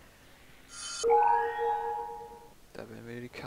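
A bright chime rings out in a game.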